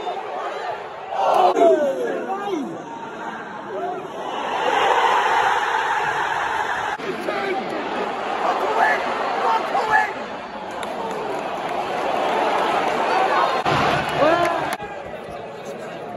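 A large stadium crowd murmurs and chatters all around, outdoors.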